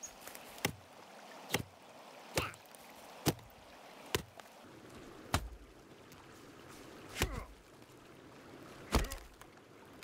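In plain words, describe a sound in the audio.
An axe chops into a tree trunk with sharp, regular thuds.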